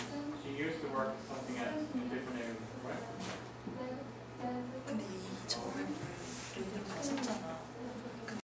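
Paper rustles as pages are turned.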